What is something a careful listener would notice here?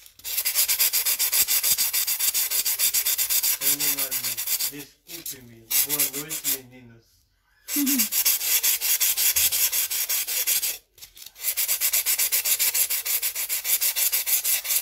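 A hand rubs quickly and rhythmically across a stiff paper surface.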